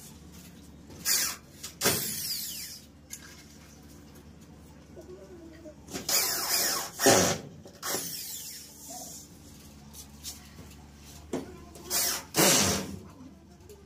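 A power drill whirs in short bursts, driving screws.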